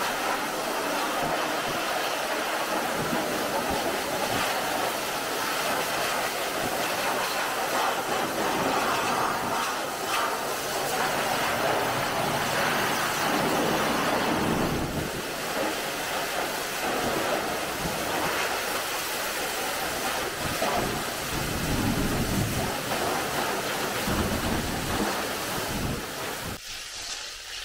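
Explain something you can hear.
A pressure washer hisses as it sprays water in a steady, noisy stream.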